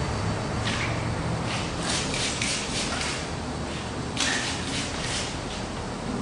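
A spray bottle spritzes water in short bursts.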